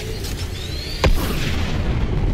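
A launch device fires with a sudden whoosh.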